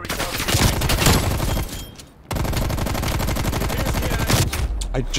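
An automatic rifle fires rapid bursts, with short pauses between them.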